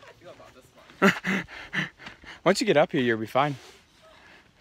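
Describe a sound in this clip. A young man laughs loudly close by.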